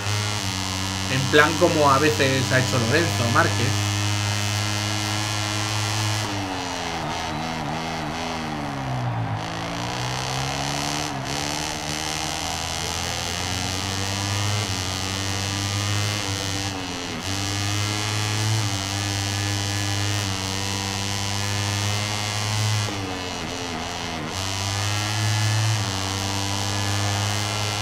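A racing motorcycle engine roars, its pitch dropping as it slows for corners and climbing again.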